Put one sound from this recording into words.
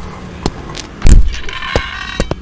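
A glass door shatters.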